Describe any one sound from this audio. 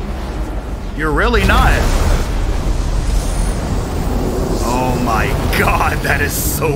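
A young man talks and exclaims with animation close to a microphone.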